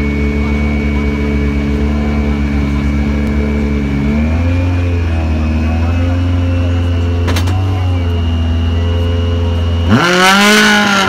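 A rally car engine idles with a deep, steady rumble close by.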